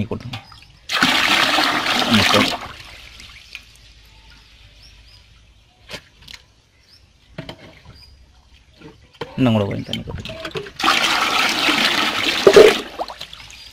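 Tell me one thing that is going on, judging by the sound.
Water gushes noisily into a tub.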